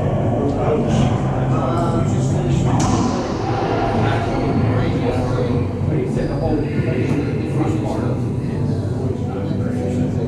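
A racquetball smacks off walls and racquets, echoing loudly in a hard, empty court.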